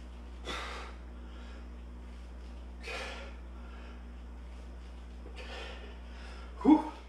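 A man exhales sharply with each lift.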